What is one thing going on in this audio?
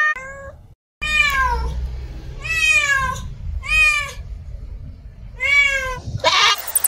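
A cat meows repeatedly.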